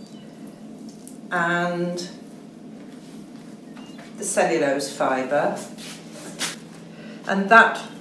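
Wet fabric squelches softly as it is laid down and pressed.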